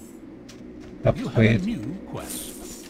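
A short fanfare chime sounds.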